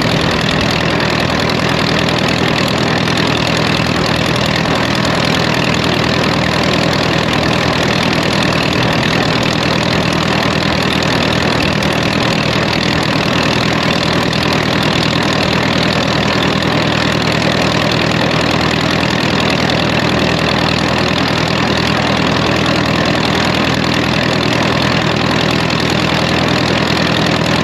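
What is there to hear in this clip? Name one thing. A tractor engine chugs loudly and steadily up close.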